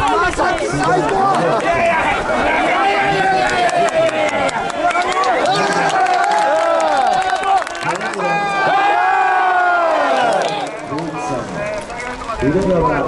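A large crowd of fans chants and sings loudly together outdoors.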